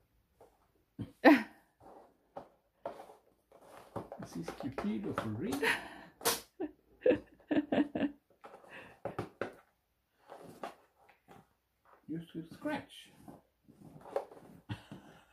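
A cardboard box scrapes and rustles on a hard floor as a cat paws at it.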